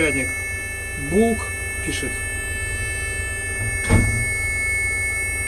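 An electronic device hums low and steadily.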